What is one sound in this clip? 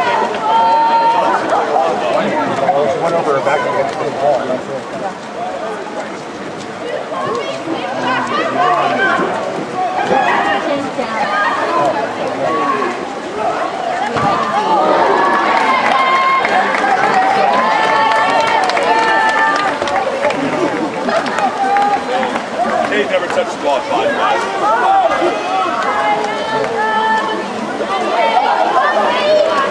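A crowd of spectators talks and cheers nearby outdoors.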